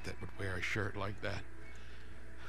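A man speaks calmly and gruffly, close by.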